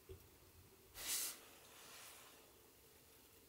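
A man yawns loudly nearby.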